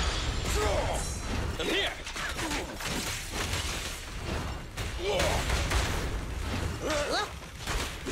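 Blades whoosh and clang in a fast fight.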